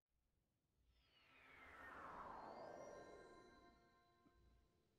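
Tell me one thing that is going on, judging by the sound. A shimmering magical whoosh sweeps downward in pitch.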